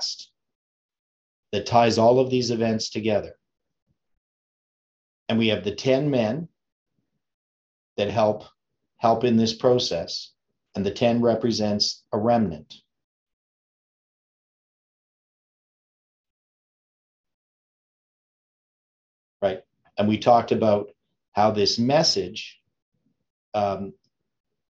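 An older man speaks calmly and closely into a microphone, with long pauses.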